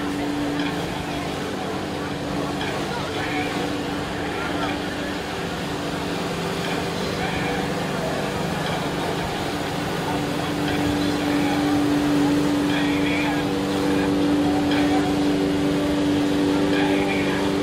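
A personal watercraft engine drones under load.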